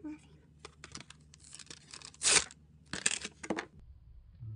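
Cardboard packaging rustles and scrapes as it is handled.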